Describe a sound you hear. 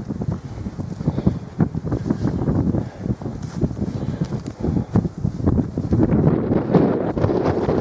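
Footsteps swish through tall dry grass.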